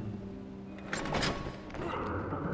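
A grappling hook fires with a sharp whoosh.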